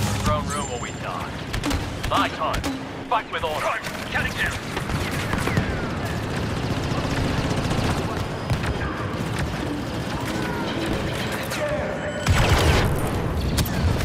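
Laser guns fire in quick bursts, with sharp zapping shots.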